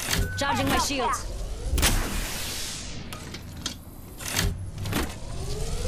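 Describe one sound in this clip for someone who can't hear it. A sci-fi shield cell charges with an electric crackle.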